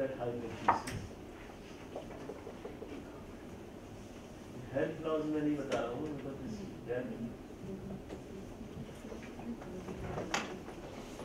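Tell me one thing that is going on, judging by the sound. A man speaks calmly, heard from across an echoing room.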